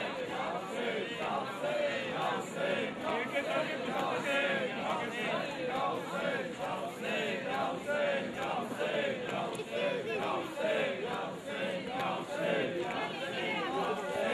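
A crowd of men chant and call out loudly outdoors.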